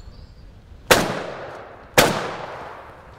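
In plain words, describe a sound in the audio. A shotgun fires two loud shots outdoors.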